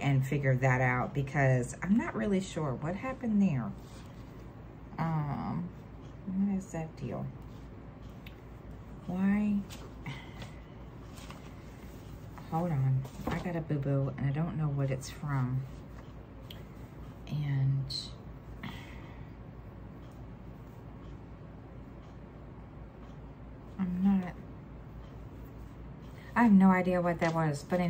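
A middle-aged woman talks calmly and close by, in short bursts with pauses.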